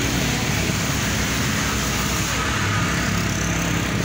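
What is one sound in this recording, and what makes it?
A motorcycle approaches on a wet road.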